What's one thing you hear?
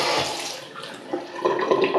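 Water trickles and drips from a tap.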